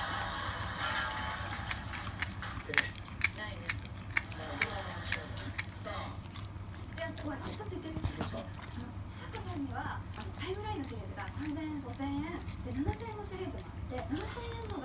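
A small dog chews and smacks its lips on a treat close by.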